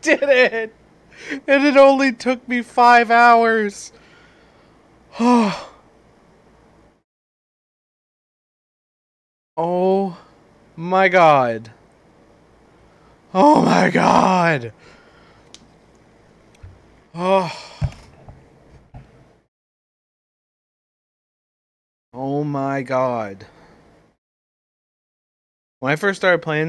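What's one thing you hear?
A man talks with animation into a close microphone, in bursts with long pauses.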